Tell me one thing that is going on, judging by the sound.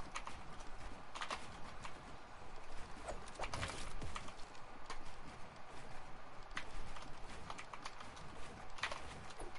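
Wooden walls are built with quick clacking thuds.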